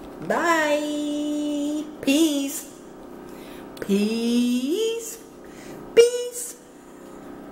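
A woman sings in long drawn-out notes close to a microphone.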